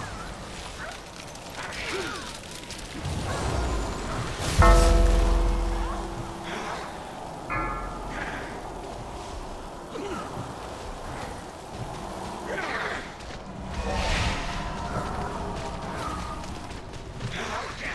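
Magic spells whoosh, crackle and boom in a busy fight.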